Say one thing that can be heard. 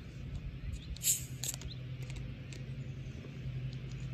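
A plastic bottle crinkles and taps as a hand grips it.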